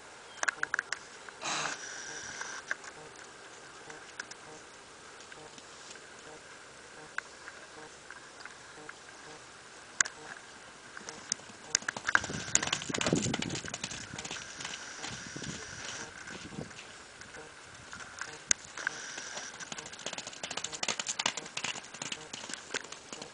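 A horse gallops with soft, thudding hoofbeats on wet ground.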